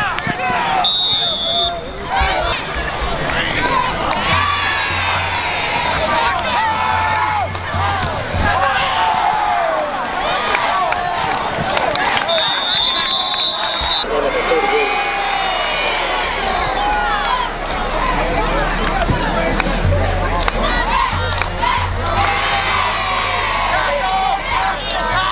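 A large crowd of spectators cheers and chatters outdoors.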